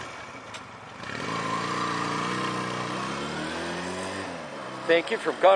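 A motorcycle engine revs up and pulls away, fading into the distance.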